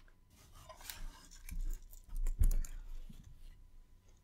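A cable rustles as it is moved.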